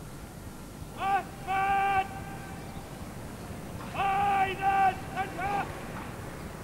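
Brass horns sound short, loud calls outdoors.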